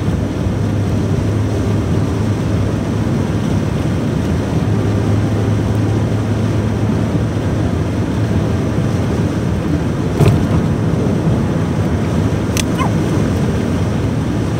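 Tyres rumble and hiss on a road.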